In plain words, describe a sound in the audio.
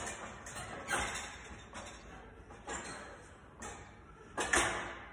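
A man breathes out hard and strains with each push.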